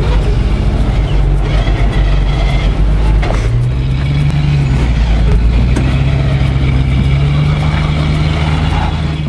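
Tyres grind and scrape on rock.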